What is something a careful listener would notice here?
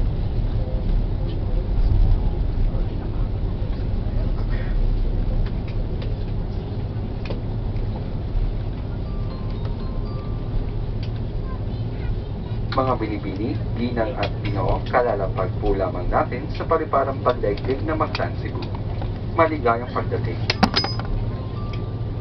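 A jet engine roars steadily, heard from inside an airliner cabin.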